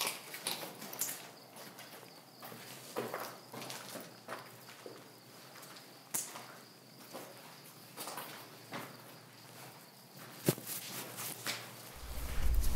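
Footsteps crunch on a gritty floor, heard close by.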